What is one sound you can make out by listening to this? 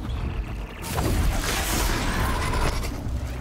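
An electric blast crackles and booms.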